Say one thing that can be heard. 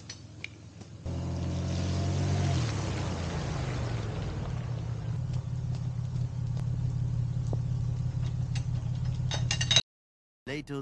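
A pickup truck drives past with a low engine rumble.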